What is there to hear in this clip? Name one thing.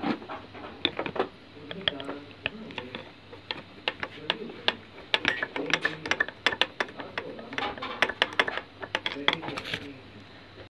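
A metal wrench clanks and scrapes against a bolt.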